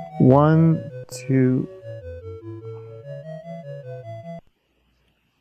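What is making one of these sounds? Retro computer game music plays in simple beeping tones, then stops.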